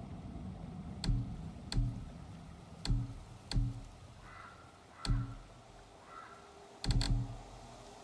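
Soft menu clicks sound as selections change.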